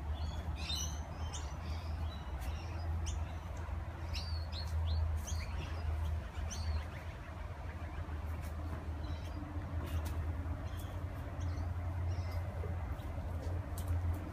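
Feet thud softly on grass as a man lunges.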